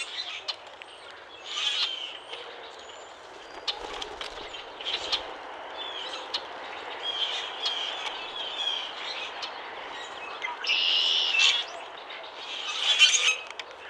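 A bird gives harsh, squeaky calls and chirps close by.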